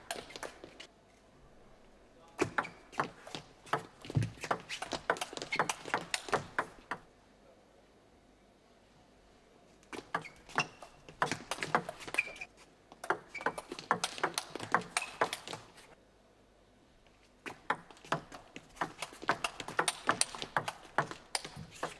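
A table tennis ball clicks back and forth off paddles and the table in quick rallies.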